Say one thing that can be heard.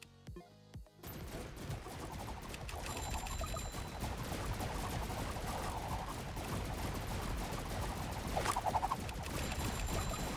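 Rapid gunfire crackles and pops without a break.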